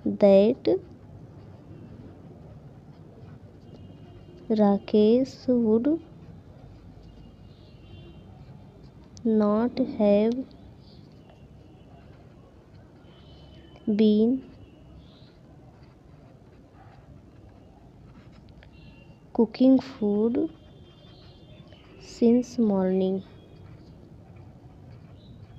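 A felt-tip marker scratches and squeaks faintly on paper.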